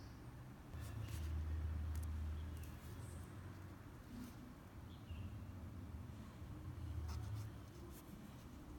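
Fingers handle a small metal fishing hook with faint clicks and taps.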